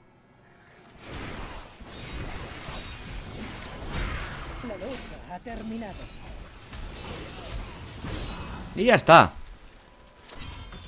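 Spells, blows and explosions crash and rumble in a fight.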